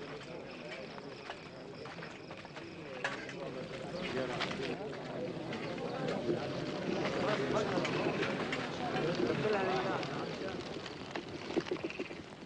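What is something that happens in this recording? A crowd murmurs as it approaches.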